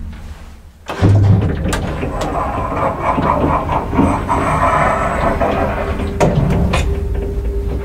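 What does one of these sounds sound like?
A traction elevator hums as the car travels.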